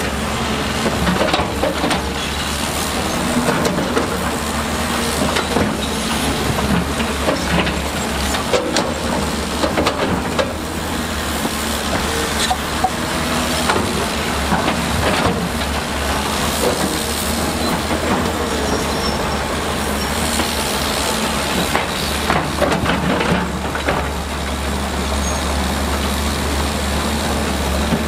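An excavator bucket scrapes and clunks against rocks and mud.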